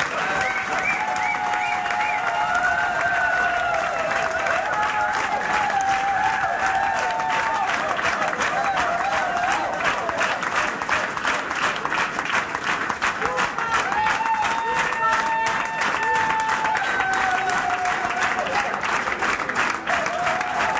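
People clap along in a steady, fast rhythm.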